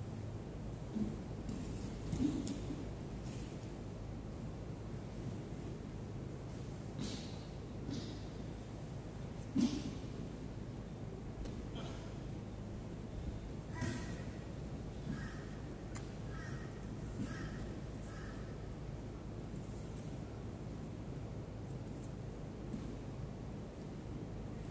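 Stiff cloth rustles as people grapple.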